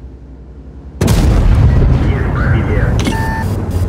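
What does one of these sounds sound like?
A tank engine roars loudly as a tank drives forward.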